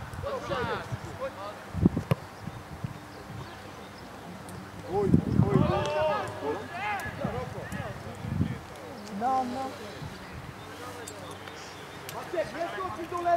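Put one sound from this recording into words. Football players shout and call to each other on an open field.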